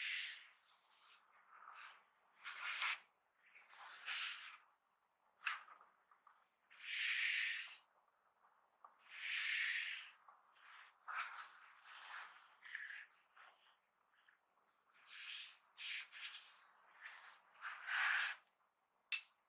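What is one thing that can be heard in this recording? Gloved fingers rub and brush against a smooth hard lid with soft swishing.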